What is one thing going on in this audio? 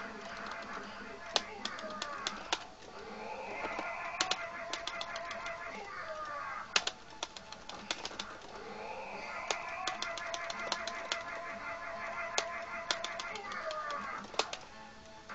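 Video game music plays steadily.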